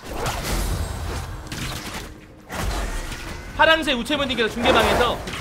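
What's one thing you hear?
Magical spell effects whoosh and crackle in a fast fight.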